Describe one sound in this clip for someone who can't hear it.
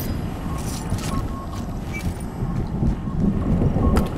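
A metal chest is opened with a chime.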